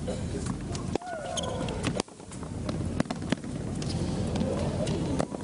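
Tennis shoes squeak on the court.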